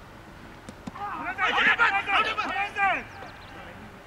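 Men shout loudly outdoors at a distance.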